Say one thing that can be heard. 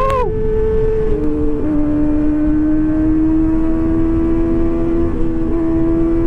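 Wind rushes past as the motorcycle rides along.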